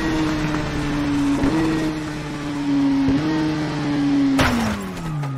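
A motorcycle engine revs high and drops briefly as it shifts gears.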